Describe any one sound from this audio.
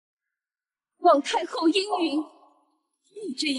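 A young woman speaks sharply and pleadingly, close by.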